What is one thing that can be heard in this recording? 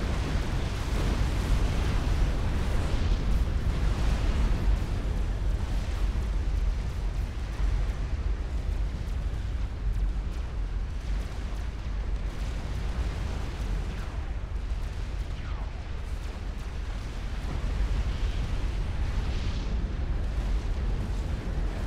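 Explosions and gunfire rumble in a busy battle.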